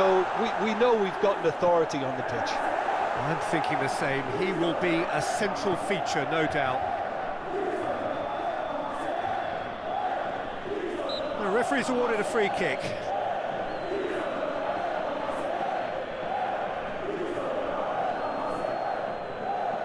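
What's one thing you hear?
A large crowd chants and sings steadily in a big stadium.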